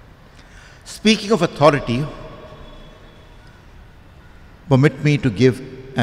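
An elderly man speaks calmly into a microphone in a reverberant hall, with pauses between phrases.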